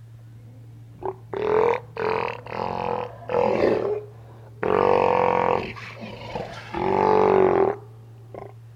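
Sea lions bark and roar loudly up close.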